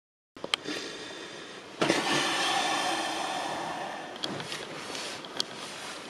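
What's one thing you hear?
A young man speaks quietly and close to the microphone.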